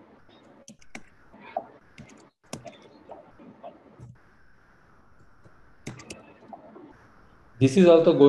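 Keys on a keyboard click in quick bursts.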